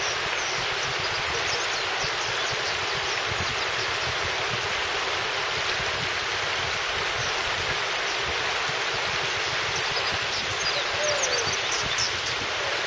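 A shallow river rushes steadily over rocks outdoors.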